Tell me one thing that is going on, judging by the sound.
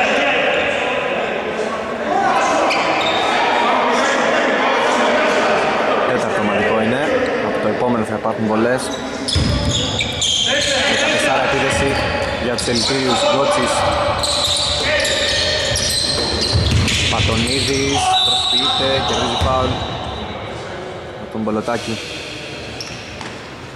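Men shout during a game in an echoing hall.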